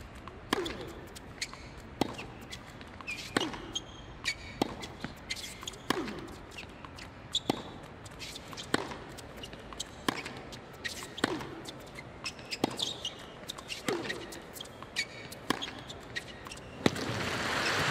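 Tennis rackets strike a ball back and forth in a steady rally.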